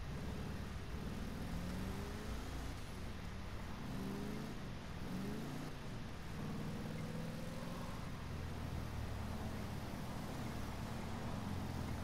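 A car engine revs and roars, rising and falling in pitch as it speeds up and shifts gears.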